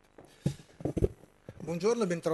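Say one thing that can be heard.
An elderly man speaks into a microphone.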